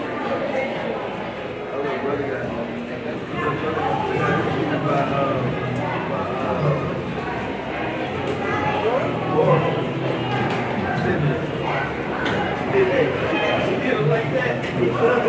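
A crowd of people chatters in a large echoing gym.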